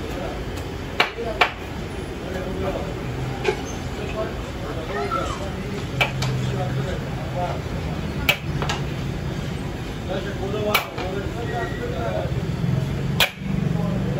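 A metal ladle knocks and scrapes against a large cooking pot.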